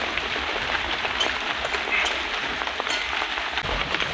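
Rain drips steadily from a roof.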